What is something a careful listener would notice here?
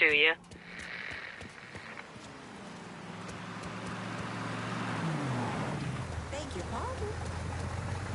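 Footsteps run across pavement.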